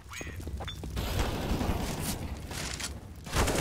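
Flames roar and crackle close by.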